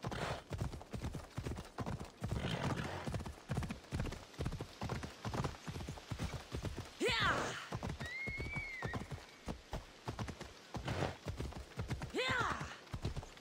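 A horse's hooves thud steadily on rocky ground.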